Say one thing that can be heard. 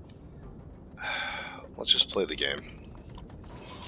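A person gulps a drink.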